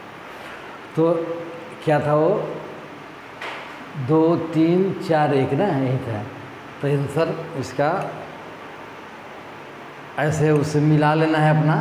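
A man speaks in a teaching manner, close to a microphone.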